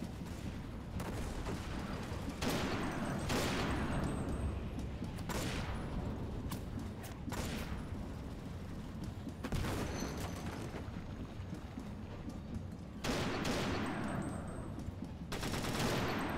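Rifle shots crack loudly and echo, one every few seconds.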